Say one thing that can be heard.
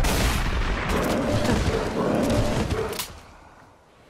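A creature snarls and growls.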